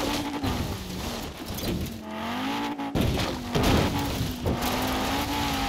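Branches and bushes crash and scrape against a car.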